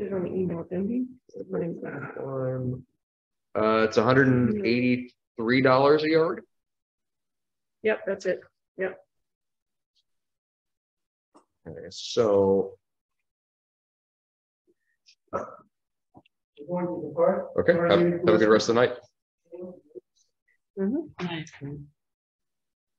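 A man speaks calmly through an online call microphone, in short bursts with pauses.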